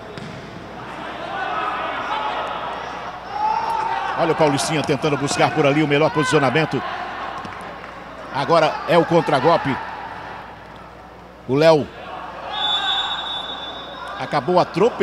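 A small crowd cheers and shouts in an echoing indoor hall.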